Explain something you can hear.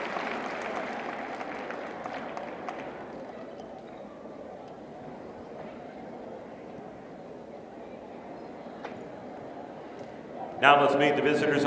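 A crowd murmurs quietly in a large echoing hall.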